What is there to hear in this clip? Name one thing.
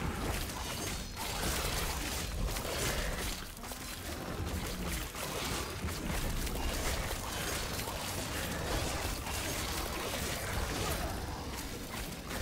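Game spells crackle and boom as a fight goes on.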